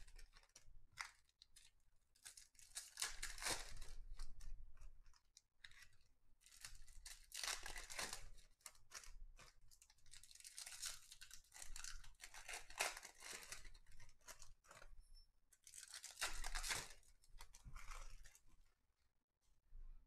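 Cards slap softly onto a stack.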